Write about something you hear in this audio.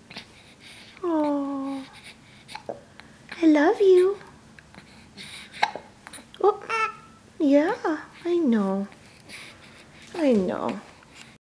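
A baby coos and babbles close by in short, sing-song bursts.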